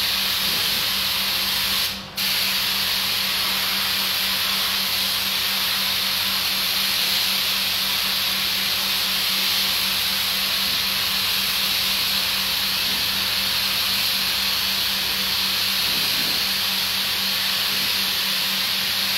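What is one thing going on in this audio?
A pressure washer's pump hums steadily.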